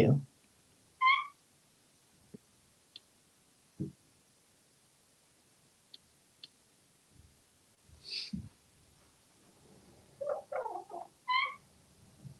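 A parrot whistles in short high notes.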